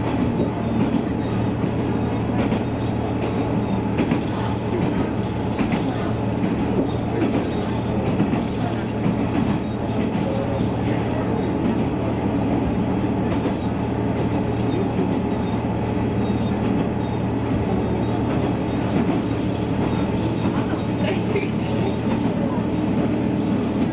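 Wheels clatter rhythmically over rail joints.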